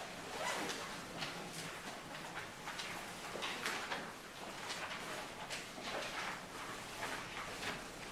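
A woman speaks calmly to an audience in a room with a slight echo.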